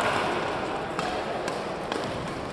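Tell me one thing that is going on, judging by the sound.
A racket strikes a shuttlecock with sharp pops.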